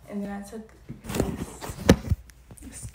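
Clothing rustles and bumps close by.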